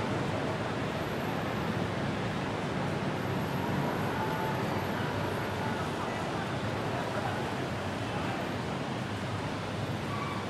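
People chat faintly in the distance.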